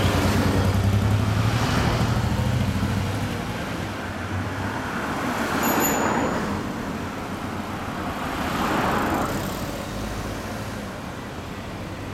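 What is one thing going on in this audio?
Cars pass by on the road, tyres hissing.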